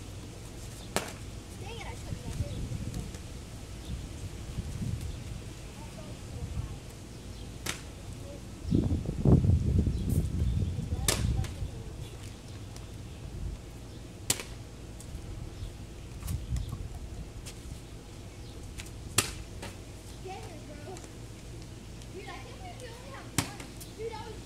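Plastic bottles clack as boys flip them onto pavement outdoors.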